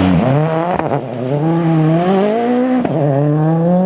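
A rally car engine screams through gear changes as the car accelerates away.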